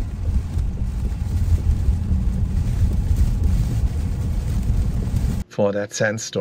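A car engine rumbles low as the car drives on a wet road.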